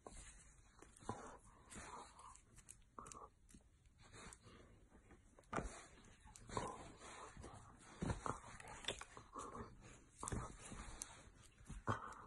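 A dog growls and grumbles playfully close by.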